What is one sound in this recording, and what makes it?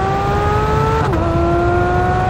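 A sports car engine briefly dips in pitch as the gears shift.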